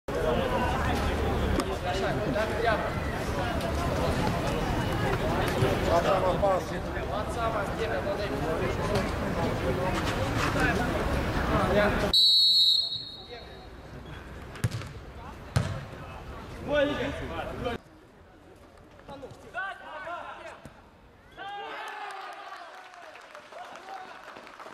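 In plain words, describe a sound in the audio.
Young men shout to each other across an open-air sports pitch.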